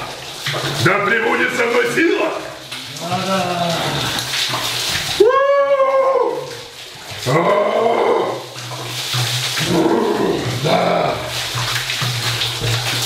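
A young man shouts and groans with strain, close by.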